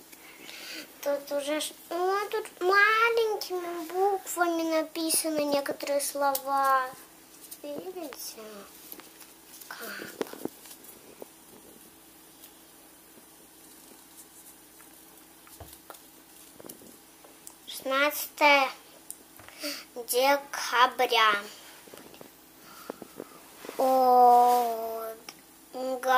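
A young girl talks close by, with animation.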